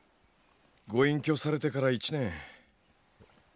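A man speaks calmly and close.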